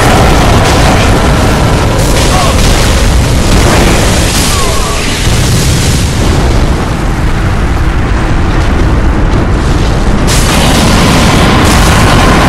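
Fire roars in a burst of flames.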